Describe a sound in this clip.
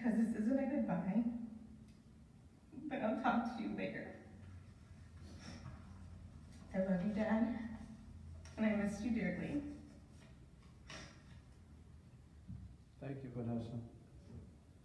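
A young woman speaks calmly into a microphone in an echoing room.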